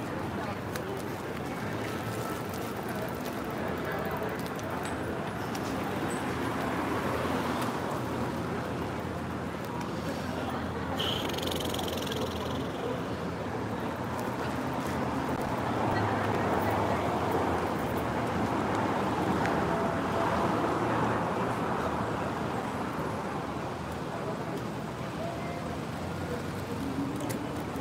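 City street noise hums steadily outdoors.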